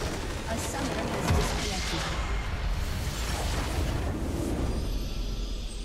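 A crystal shatters in a loud, rumbling blast.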